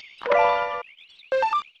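A short jingle chimes as an item is received.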